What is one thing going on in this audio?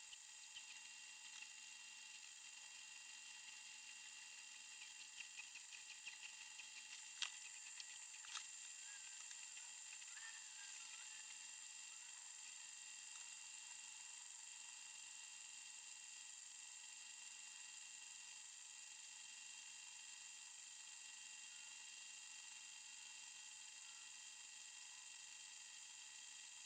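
A small electric gear motor whirs steadily.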